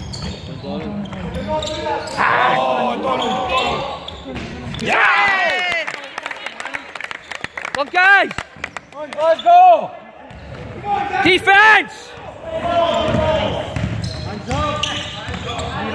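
Teenage boys shout to each other in an echoing hall.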